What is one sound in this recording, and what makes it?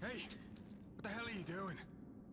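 A man calls out sharply in alarm.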